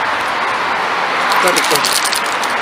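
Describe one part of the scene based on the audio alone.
A plastic bag crinkles close by.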